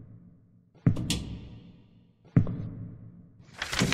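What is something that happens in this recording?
A small cabinet door clicks open.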